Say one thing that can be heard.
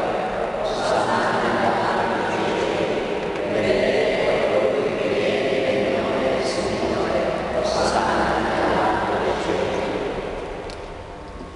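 A man recites prayers through a loudspeaker in a large echoing hall.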